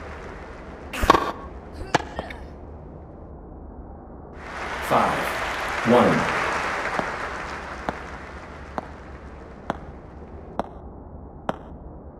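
A tennis ball is hit back and forth with sharp pops.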